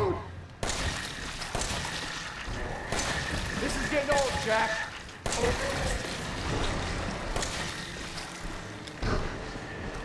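A handgun fires several loud shots.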